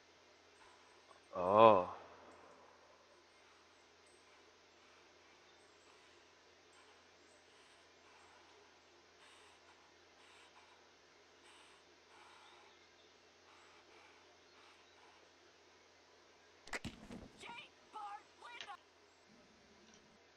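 A young man speaks quietly close to a microphone.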